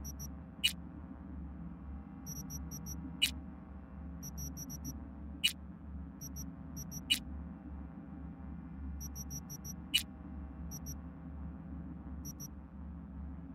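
Short electronic clicks and beeps sound as menu items are selected.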